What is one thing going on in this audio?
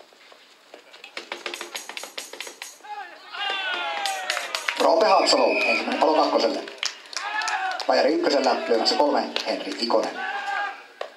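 Hands clap in quick bursts.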